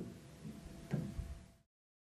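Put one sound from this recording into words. Billiard balls click against each other.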